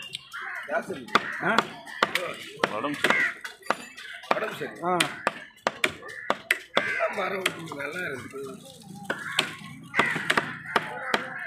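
A knife chops through fish onto a wooden block with sharp, repeated knocks.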